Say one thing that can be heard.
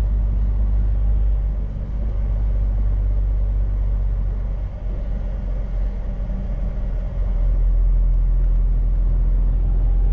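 A truck engine hums steadily inside the cab.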